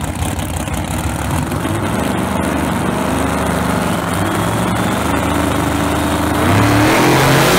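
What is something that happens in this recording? Race car engines idle loudly and rumble.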